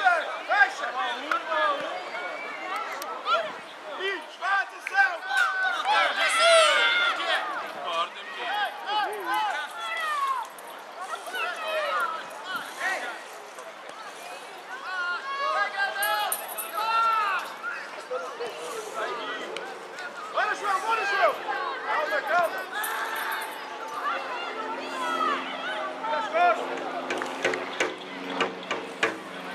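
Children shout and call out across an open playing field.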